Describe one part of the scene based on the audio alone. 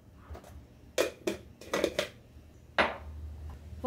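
A plastic lid clicks and knocks against a glass jar.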